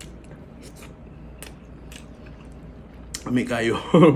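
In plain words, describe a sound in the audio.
Food squelches and crunches as a young man chews.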